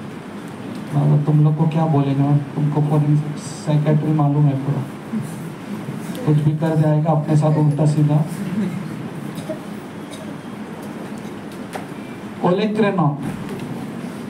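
A man speaks clearly and steadily, as if lecturing, in a room with some echo.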